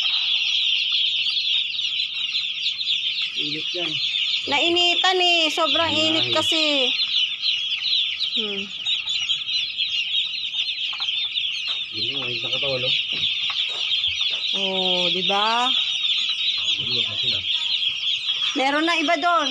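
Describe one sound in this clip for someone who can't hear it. Many chicks peep loudly and constantly.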